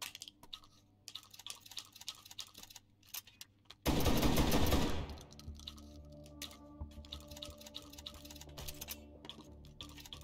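Shotgun shells click as they are loaded into a shotgun.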